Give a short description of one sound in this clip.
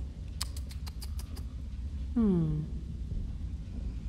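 An elderly woman speaks softly in a low, eerie voice.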